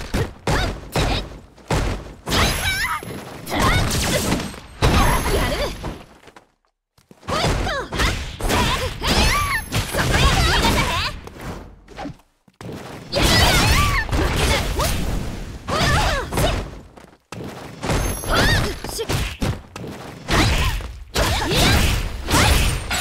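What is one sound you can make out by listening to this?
Punches and kicks land with sharp, heavy smacks in quick bursts.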